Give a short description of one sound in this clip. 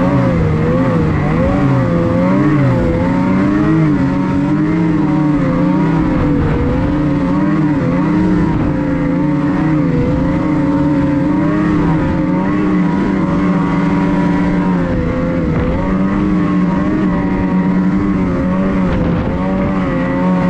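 A snowmobile engine drones steadily close by, its pitch wavering as it speeds up and slows.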